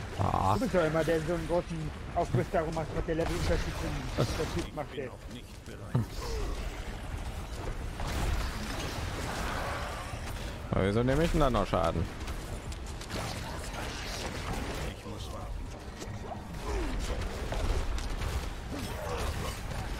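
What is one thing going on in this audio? Magic blasts and weapon impacts crash during a fast battle.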